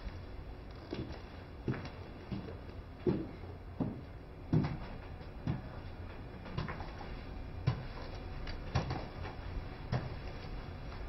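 High heels click on a hard floor as a woman walks closer.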